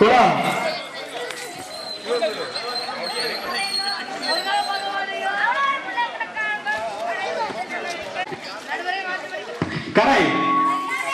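Many children chatter and call out in the background.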